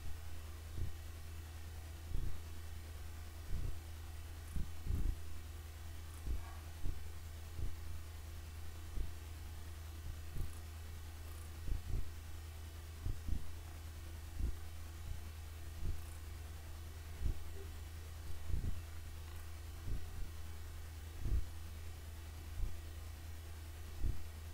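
Deep explosions boom at a steady pace.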